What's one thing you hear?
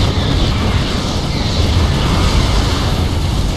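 Laser weapons fire with a steady crackling hum.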